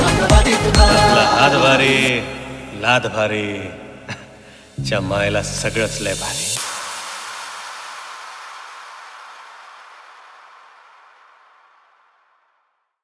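Loud remixed dance music plays with heavy beats and chopped vocals, then rings out and fades away.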